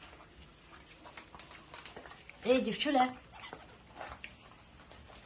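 Puppies scuffle and paw softly on a blanket.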